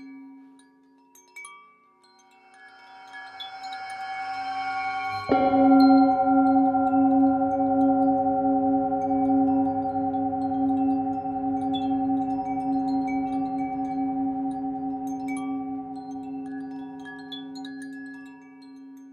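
A singing bowl hums with a rich, ringing tone that swells, then slowly fades.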